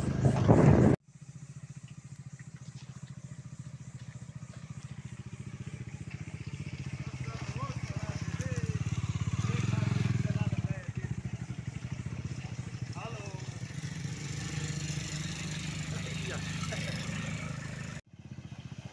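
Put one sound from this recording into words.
Motorcycle engines rumble and rev.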